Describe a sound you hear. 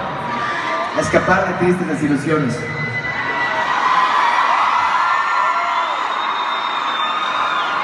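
A young man sings through loudspeakers in a large echoing hall.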